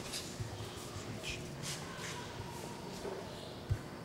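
A pencil scratches across paper.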